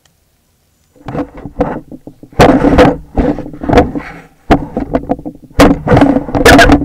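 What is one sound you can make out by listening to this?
An elk nuzzles and rubs against the microphone with loud scraping and knocking.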